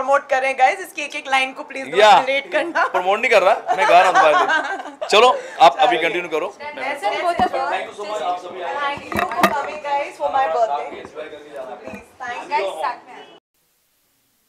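A woman talks and laughs into microphones up close.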